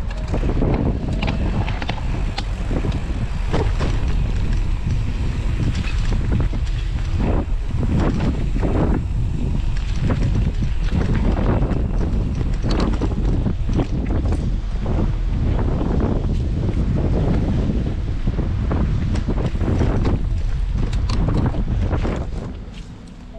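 Bike tyres roll and rattle over a bumpy dirt trail.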